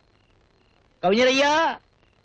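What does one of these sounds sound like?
An elderly man laughs aloud nearby.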